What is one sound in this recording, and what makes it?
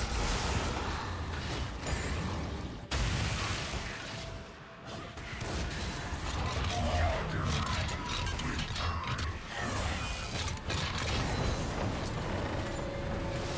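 Video game combat effects crackle and clash with spell and hit sounds.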